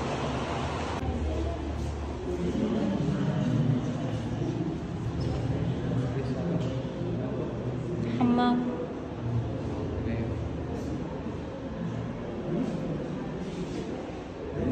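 A person talks in an echoing room.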